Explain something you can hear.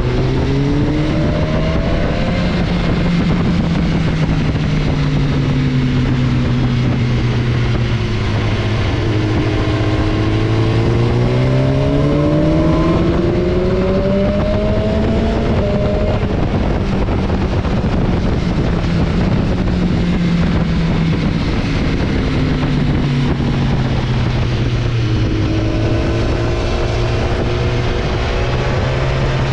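A motorcycle engine hums close by, its pitch rising and falling with the throttle.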